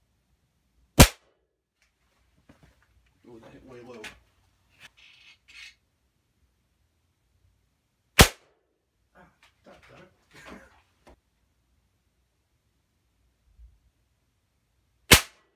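A gunshot cracks sharply, several times.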